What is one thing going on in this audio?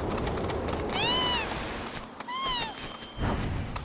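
A large bird squawks twice in short rising and falling cries.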